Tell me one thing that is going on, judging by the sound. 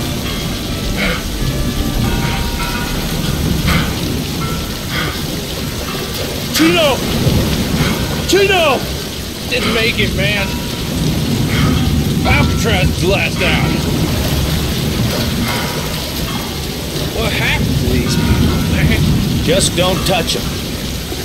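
A man talks calmly, close to a microphone.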